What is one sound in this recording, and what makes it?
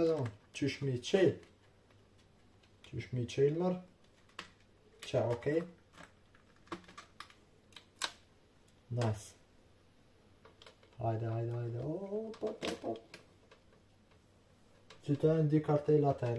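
Plastic packaging clicks and rattles as it is opened and handled.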